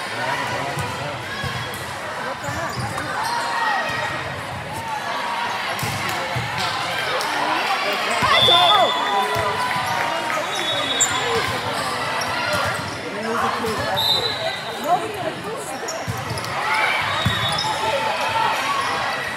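Young women call out and chatter in a large echoing hall.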